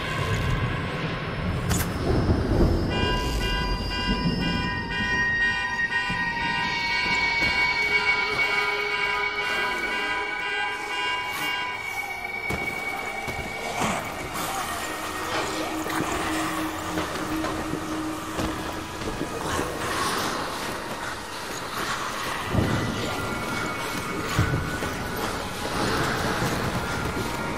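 Zombies groan and moan nearby.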